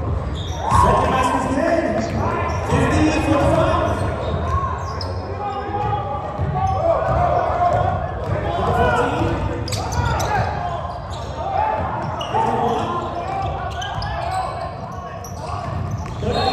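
A crowd of people chatter and call out in a large echoing gym.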